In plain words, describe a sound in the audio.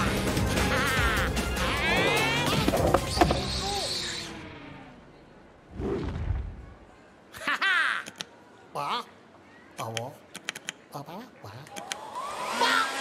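A cartoon creature screams and squeals excitedly.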